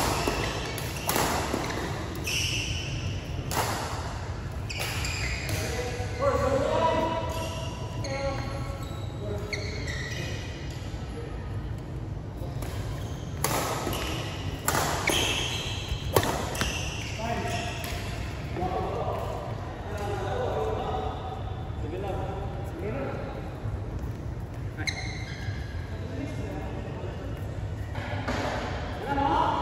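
Shuttlecocks are struck sharply by rackets, in a large echoing hall.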